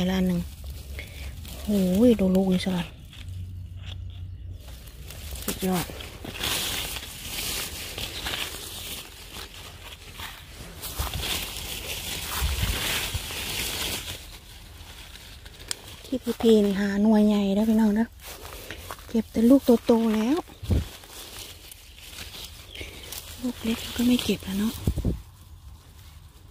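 Leaves rustle as a hand pushes through low plants.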